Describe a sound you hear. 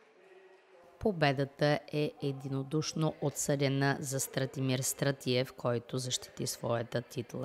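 A man announces loudly over a loudspeaker in an echoing hall.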